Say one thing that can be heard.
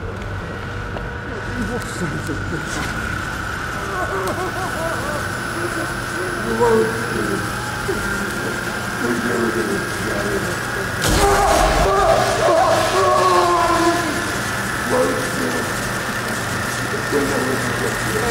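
Electricity buzzes and crackles steadily.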